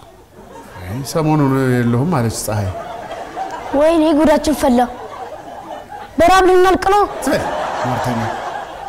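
A man speaks loudly and with exasperation, close by.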